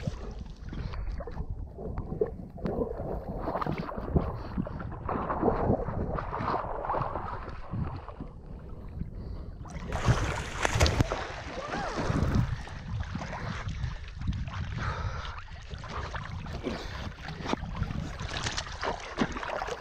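Water splashes as dogs run and wade through shallow water close by.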